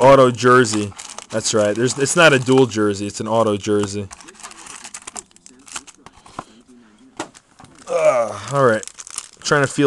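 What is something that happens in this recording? Foil card packs crackle and tear open.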